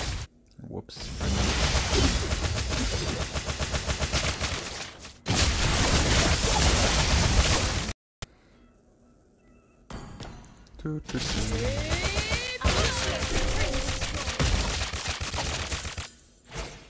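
Video game spell effects whoosh and crackle during a battle.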